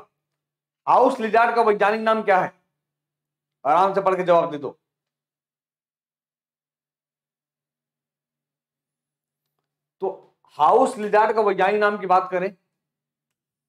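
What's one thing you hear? A man speaks with animation into a close microphone, with pauses.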